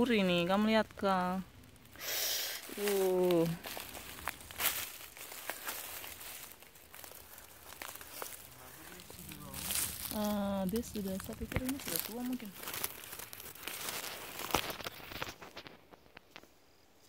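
Dry leaves and grass rustle close by.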